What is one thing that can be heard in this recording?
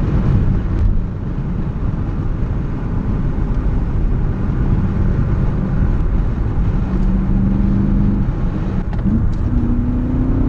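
Tyres roll and rumble on the road.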